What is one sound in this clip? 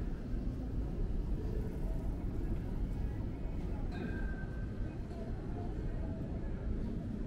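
Outdoors, wind rumbles steadily past the microphone.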